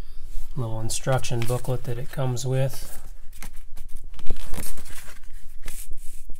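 Paper pages rustle and flap as a booklet is turned over by hand.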